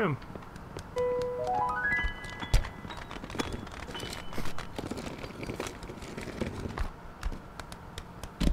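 A goose's feet patter quickly on pavement.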